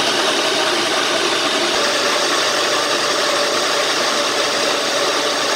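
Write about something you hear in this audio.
A blender motor whirs loudly and steadily, churning thick liquid.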